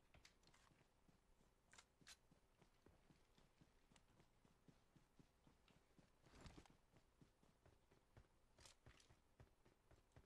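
Footsteps rustle through grass as a person runs.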